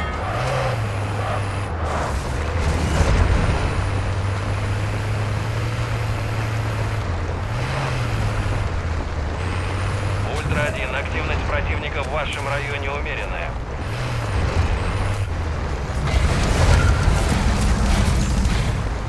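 A vehicle engine hums steadily, rising briefly in pitch as it drives.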